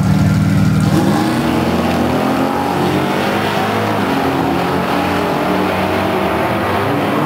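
A car engine roars as the car launches and speeds away.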